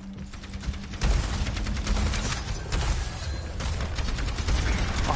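A video game weapon fires.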